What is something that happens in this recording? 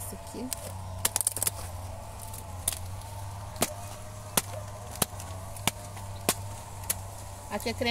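A knife cuts through a thick plant stalk with sharp snaps.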